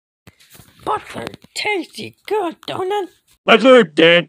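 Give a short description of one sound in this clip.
A woman speaks in a high, cartoonish voice.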